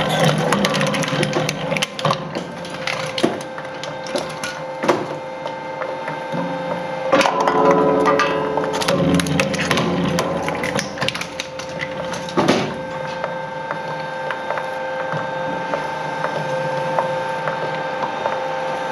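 A shredder's rotating blades grind steadily with a loud mechanical drone.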